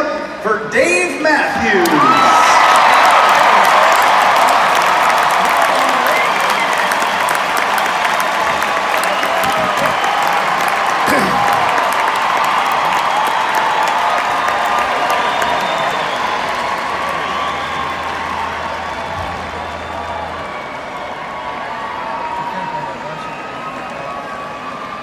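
A large crowd cheers and screams loudly in a vast echoing arena, slowly quieting.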